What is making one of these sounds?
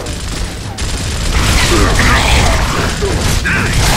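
Gunfire rattles loudly and close.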